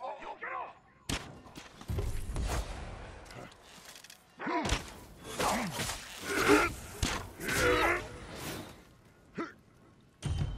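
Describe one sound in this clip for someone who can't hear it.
A sword swishes and slashes repeatedly.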